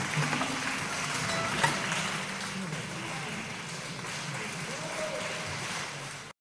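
An audience applauds in a large, echoing hall.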